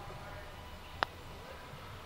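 A golf club taps a ball with a sharp click.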